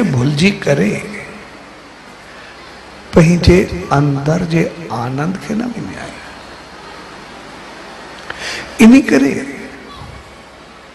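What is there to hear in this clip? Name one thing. A middle-aged man speaks into a microphone in short, heartfelt phrases, with pauses between them.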